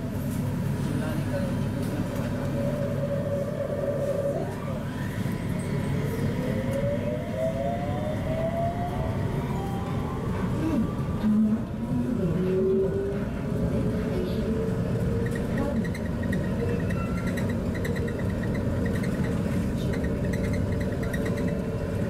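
A train hums steadily as it pulls away and speeds up along the track.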